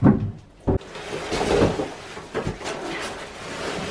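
Cardboard rustles and crinkles as a panel is unwrapped.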